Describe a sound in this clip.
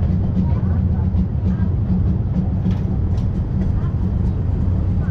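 Wind gusts and rumbles steadily outdoors.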